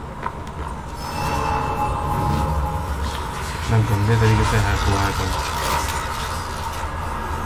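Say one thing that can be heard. Electricity crackles and fizzes in loud bursts.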